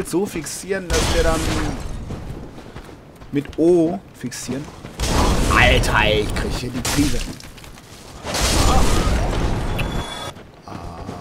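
A fireball bursts with a loud roar.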